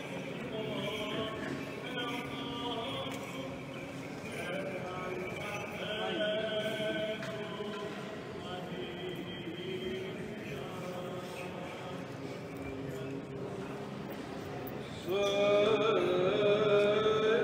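A choir of men and boys sings in harmony, echoing through a large hall.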